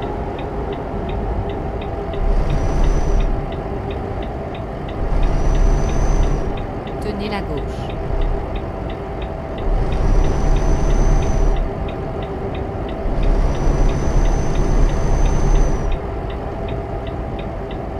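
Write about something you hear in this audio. A truck engine drones steadily while driving.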